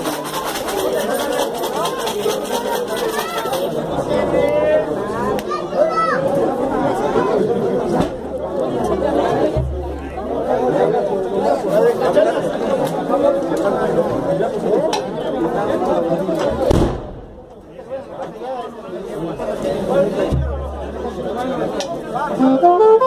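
A brass band plays loudly outdoors, with trumpets, saxophones and a tuba.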